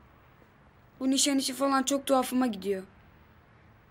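A teenage boy speaks quietly and sadly nearby.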